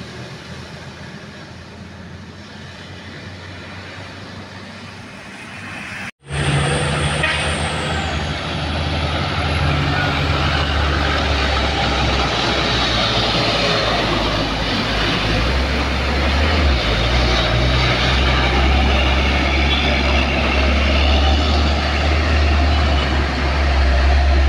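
Vehicles pass along a wet road, tyres hissing.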